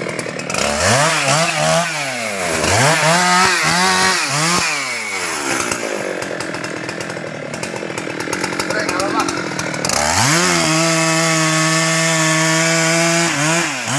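A chainsaw engine revs up and down loudly.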